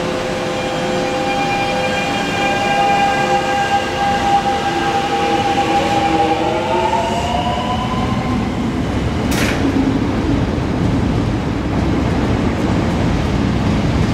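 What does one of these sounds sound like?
A train rumbles and clatters along the tracks, picking up speed.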